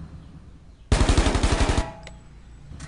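An explosion bursts loudly nearby.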